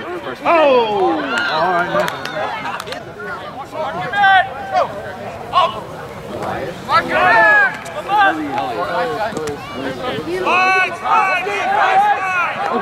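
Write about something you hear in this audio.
Young men shout and call out loudly outdoors.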